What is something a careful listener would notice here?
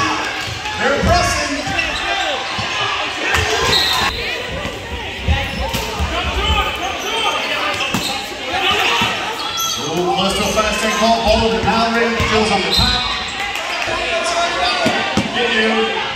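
Players and spectators shout and talk over each other in an echoing gym.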